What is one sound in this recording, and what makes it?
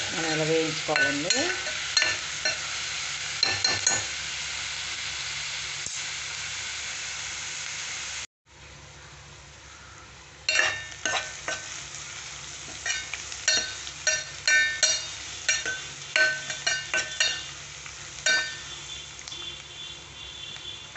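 Onions sizzle softly in a hot pot.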